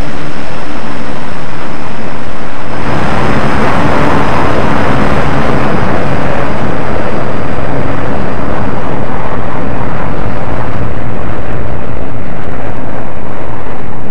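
Jet engines roar loudly as fighter jets take off.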